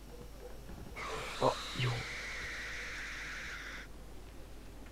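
A television hisses with loud static.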